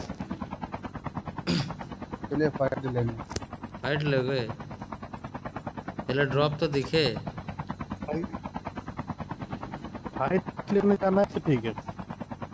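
A helicopter's rotor chops with a fast, steady thumping.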